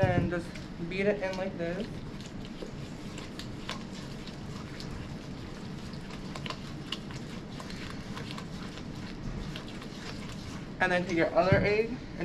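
A spoon scrapes and clinks against a metal bowl while stirring.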